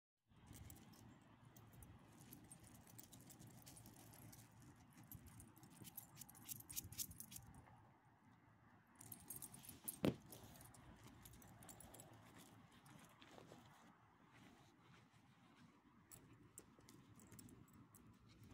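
Dogs' paws crunch and shuffle on gravel.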